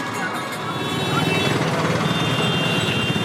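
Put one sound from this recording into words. A busy street crowd murmurs nearby.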